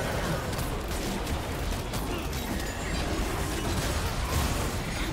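Video game spell effects crackle and whoosh.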